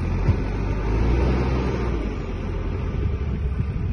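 Water splashes into a river.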